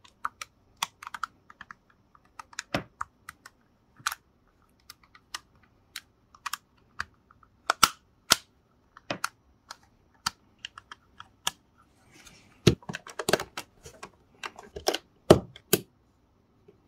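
Plastic toy bricks click and snap together close by.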